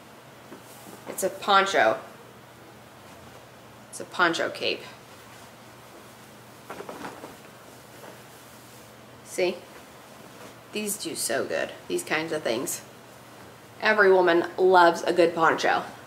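Fabric rustles as a young woman shakes out a scarf.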